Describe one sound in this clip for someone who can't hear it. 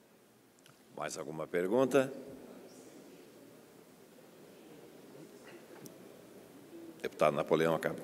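A middle-aged man speaks into microphones in short phrases with pauses.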